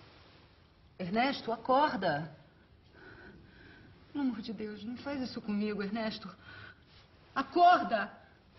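A woman speaks urgently and pleadingly up close.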